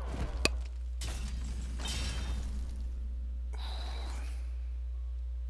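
Digital card game effects whoosh and chime.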